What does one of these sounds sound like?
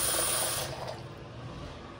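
Water runs briefly from a tap into a sink.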